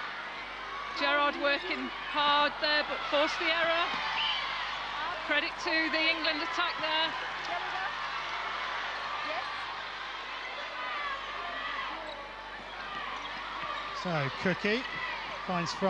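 A large crowd murmurs in an echoing indoor arena.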